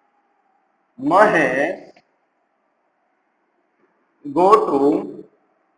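A man speaks in short, clear phrases nearby.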